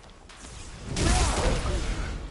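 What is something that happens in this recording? A burst of energy crackles and booms loudly.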